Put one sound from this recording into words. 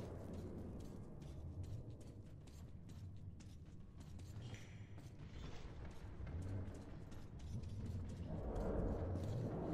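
Footsteps crunch slowly over rubble and debris.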